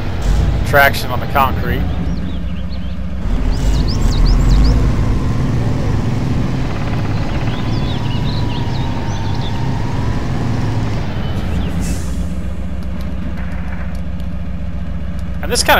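A heavy truck engine rumbles and strains at low revs.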